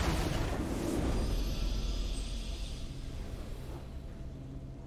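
A triumphant game fanfare swells loudly and then fades.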